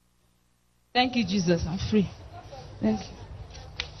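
A woman speaks into a microphone close by.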